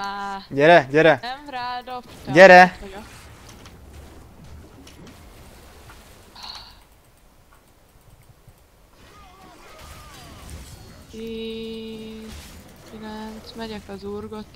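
Magical game sound effects chime and zap during a fight.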